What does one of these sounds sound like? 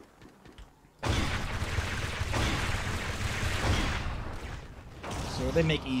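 A laser gun fires with a loud, rushing blast.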